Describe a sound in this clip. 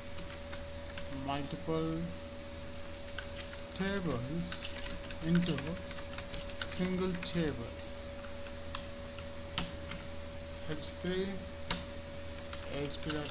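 Keyboard keys click quickly as someone types.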